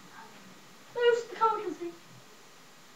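A young child speaks in a high voice nearby.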